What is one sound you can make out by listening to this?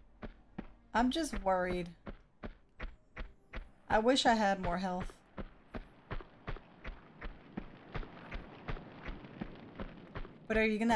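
A young woman speaks briefly and calmly into a close microphone.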